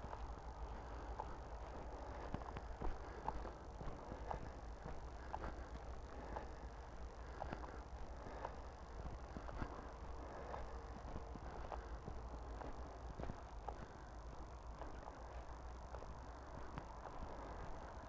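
Footsteps swish through tall grass at a steady walking pace.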